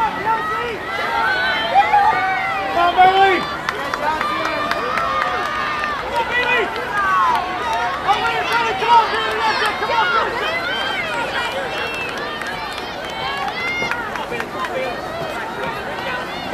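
Spectators cheer and shout as runners pass.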